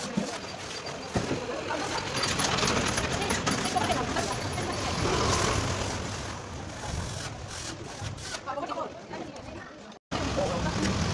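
Traffic and street noise hum outdoors.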